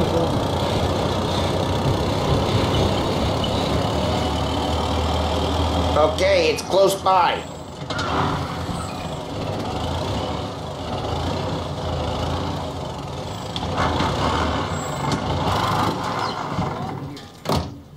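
An old car engine rumbles steadily as the car drives along.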